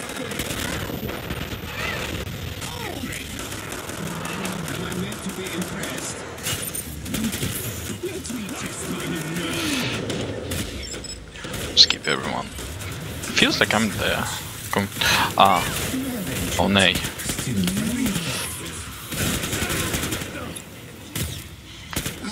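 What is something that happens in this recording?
An assault rifle fires rapid bursts of gunshots.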